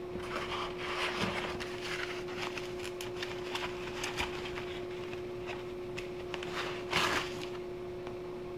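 Plastic bubble wrap rustles and crinkles as hands handle it.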